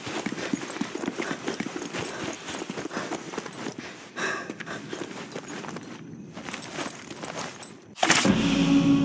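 Footsteps crunch quickly over snow and stone.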